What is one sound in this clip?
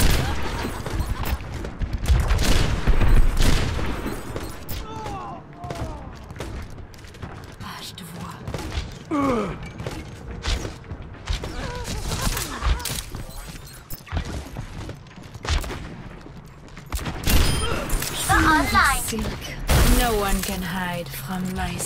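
Gunfire from a game crackles in rapid bursts.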